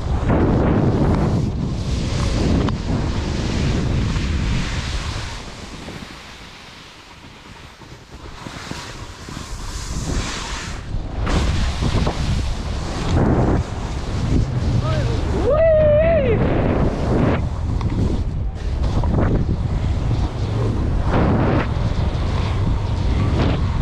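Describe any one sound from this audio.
Skis hiss and swish through soft snow.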